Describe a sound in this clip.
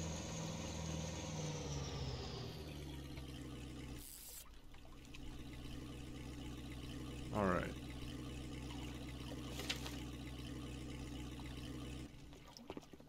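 A boat's motor hums steadily, then cuts off.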